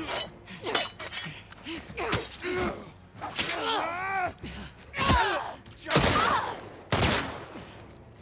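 An elderly man groans and gasps while struggling.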